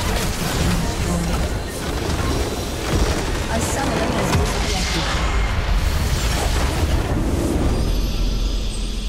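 A loud explosion roars and crackles with game effects.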